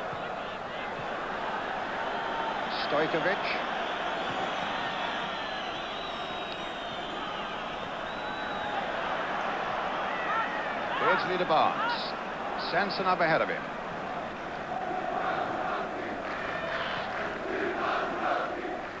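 A large stadium crowd roars steadily outdoors.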